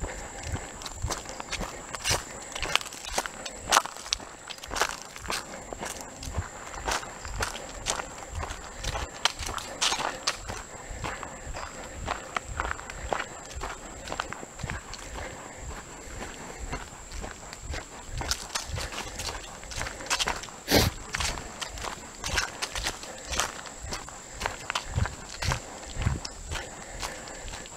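Footsteps crunch steadily on a dirt path outdoors.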